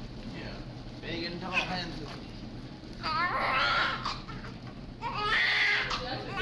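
A newborn baby cries loudly in short bursts.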